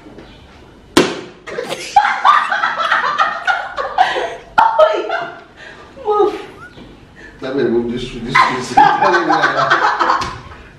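A woman laughs loudly nearby.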